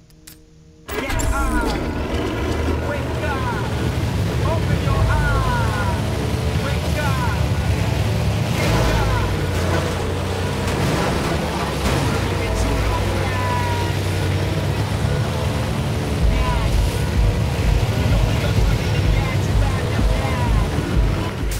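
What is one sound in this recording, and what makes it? An airboat engine roars loudly and steadily.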